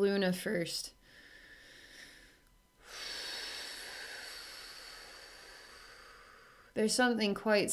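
A woman breathes in and then exhales slowly and audibly.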